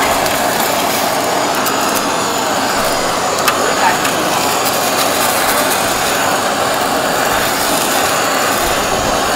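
A gas blowtorch roars steadily up close.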